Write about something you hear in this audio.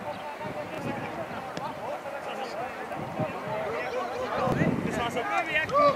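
Teenage boys shout to each other outdoors on a football pitch.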